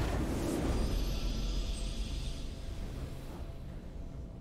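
A triumphant game fanfare rings out and fades.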